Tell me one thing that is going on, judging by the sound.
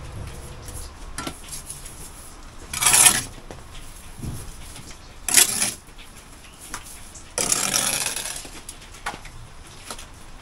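A tool scrapes against brickwork.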